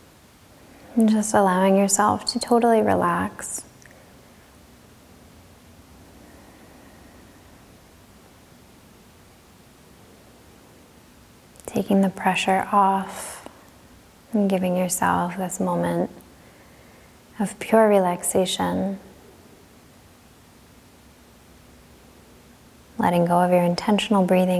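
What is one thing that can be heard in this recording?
A woman speaks slowly and calmly, with long pauses.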